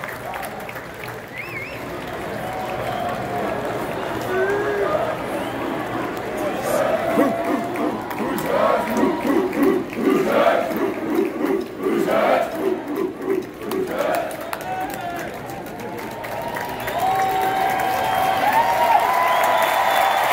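A large arena crowd cheers and roars, echoing in a big hall.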